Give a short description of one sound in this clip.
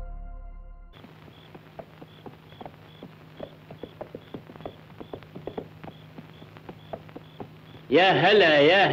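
Horse hooves clop on sand, drawing closer.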